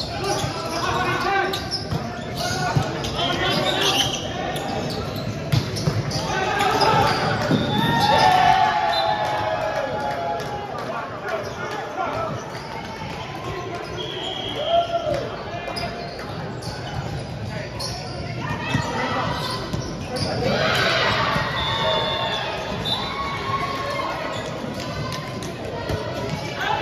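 Sneakers squeak on the hard court floor.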